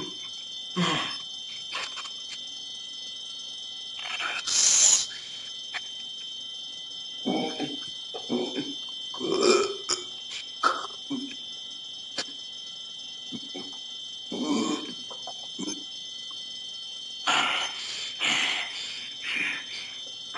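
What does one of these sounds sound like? A young man speaks in short, emotional bursts over an online call.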